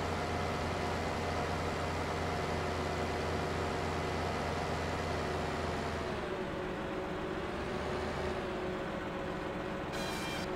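A heavy machine engine hums steadily, its pitch dropping slightly.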